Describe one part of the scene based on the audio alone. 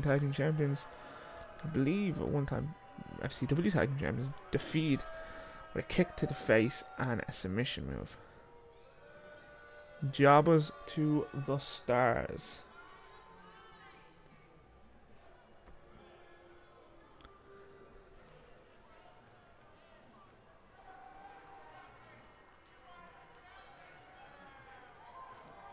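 A crowd cheers and murmurs in a large arena.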